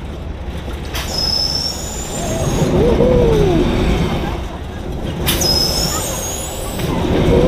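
Young people scream nearby on a ride.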